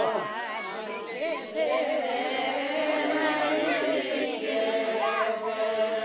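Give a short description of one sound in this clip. A group of elderly men and women sing together close to a microphone.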